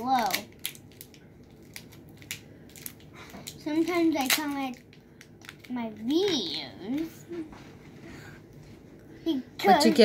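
Small plastic toy pieces click and tap.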